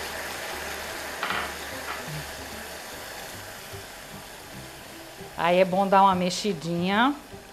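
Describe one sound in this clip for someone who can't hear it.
A spatula scrapes and stirs in a pot.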